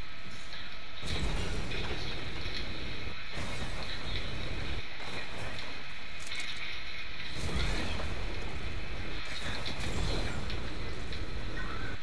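A jetpack roars and hisses in bursts.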